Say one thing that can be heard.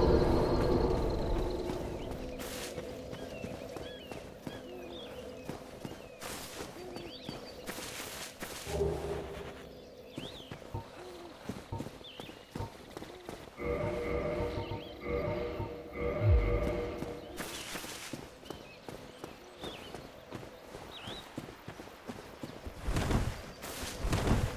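Armoured footsteps crunch on the ground at a steady pace.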